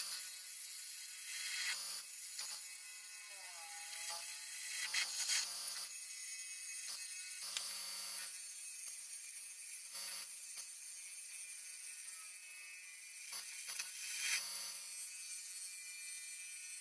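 A wood lathe spins with a steady whir.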